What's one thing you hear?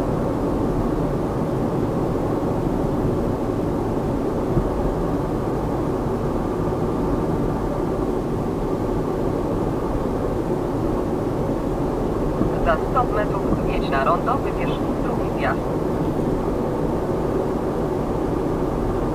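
A car engine hums steadily with tyre noise from inside the car.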